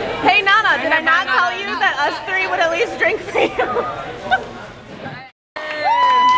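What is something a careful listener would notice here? Young women laugh and chatter close by.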